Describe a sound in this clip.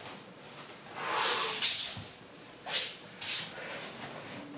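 A man exhales sharply.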